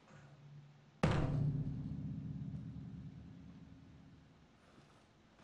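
A piano chord strikes loudly and rings out slowly.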